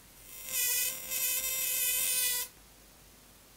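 An electric spark crackles and buzzes loudly.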